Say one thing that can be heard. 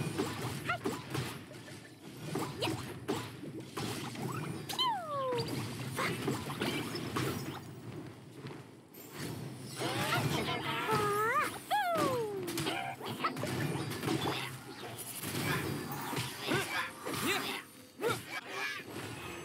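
Fiery blasts and magic attacks crackle and burst in quick succession.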